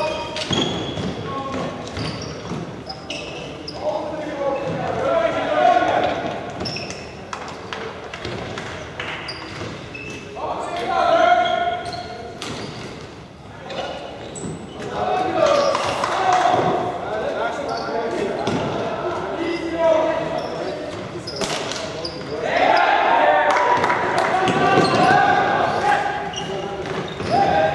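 Shoes squeak on the hall floor.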